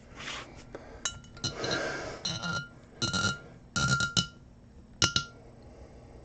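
Coins clink and rattle into a glass.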